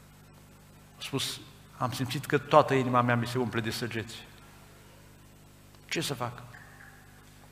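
A middle-aged man speaks with emphasis into a microphone, in short bursts.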